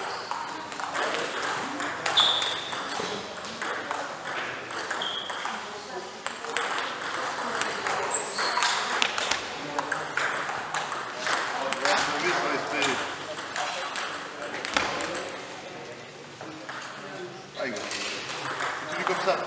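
Table tennis balls click sharply on paddles and tables in a large echoing hall.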